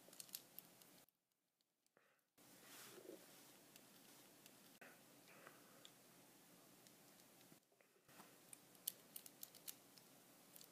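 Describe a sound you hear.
Small plastic parts click and snap together in someone's hands.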